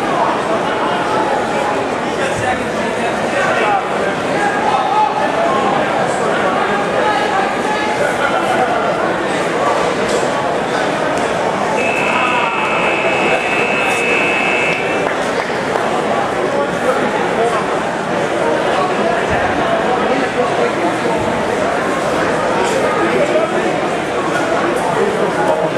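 A crowd of spectators chatters and shouts encouragement in a large echoing hall.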